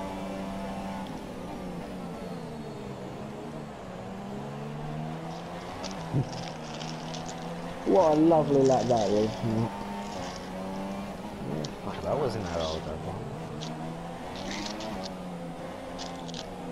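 A racing car engine screams at high revs, rising and dropping in pitch as it shifts gears.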